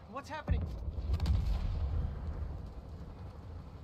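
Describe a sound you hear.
An explosion booms and rumbles deeply.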